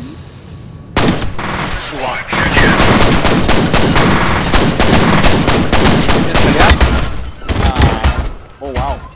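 Pistols fire rapid shots in quick bursts.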